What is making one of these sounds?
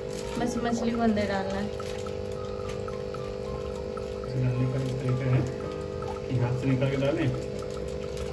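Water sloshes gently as a plastic bag is dipped into a tank.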